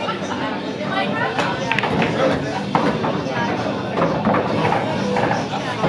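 Pool balls knock together and roll across the table.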